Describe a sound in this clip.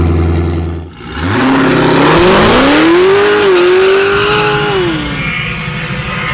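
A car engine roars and climbs in pitch as the car accelerates hard away.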